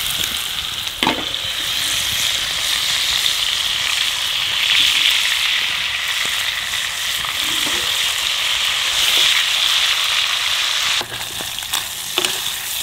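Metal tongs clink against a frying pan.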